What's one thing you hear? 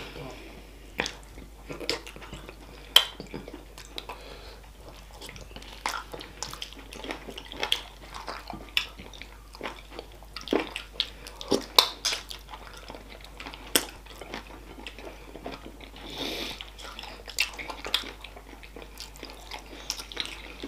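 A woman chews and slurps food loudly close to a microphone.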